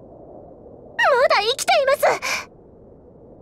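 A young woman exclaims in alarm, high-pitched and close.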